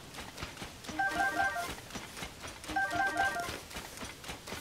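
A short bright chime rings twice.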